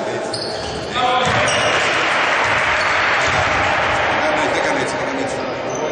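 Spectators cheer and clap.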